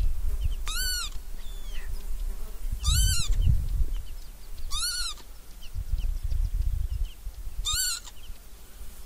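A bird of prey gives sharp, repeated calls.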